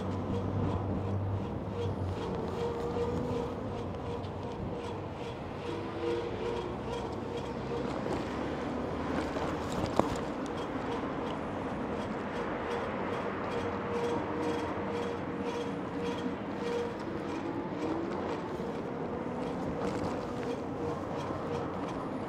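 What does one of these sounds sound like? An electric bike motor whines.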